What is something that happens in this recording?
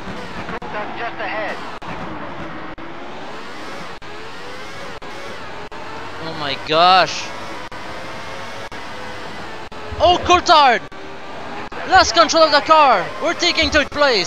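A racing car engine whines at high revs, rising and falling as it shifts gears.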